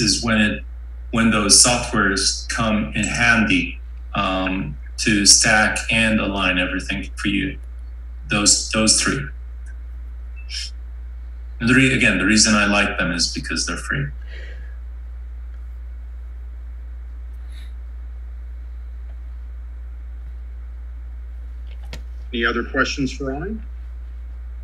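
A man talks calmly over an online call, with pauses.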